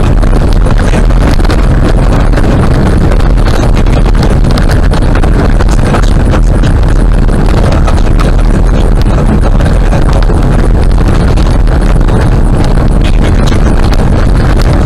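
Gravel rattles and knocks against the car's underside.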